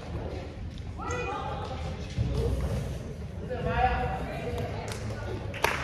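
Young girls call out and shout in a large echoing gym.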